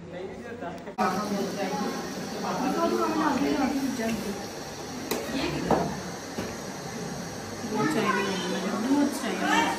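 Young women talk with each other nearby.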